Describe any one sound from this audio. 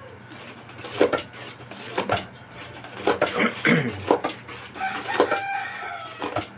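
A wooden pestle pounds into a metal pot with dull, repeated thuds.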